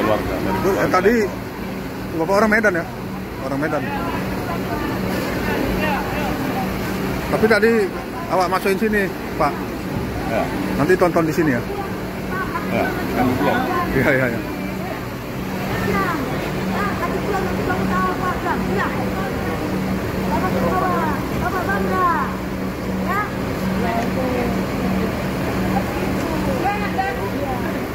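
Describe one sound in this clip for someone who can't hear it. A bus engine idles steadily.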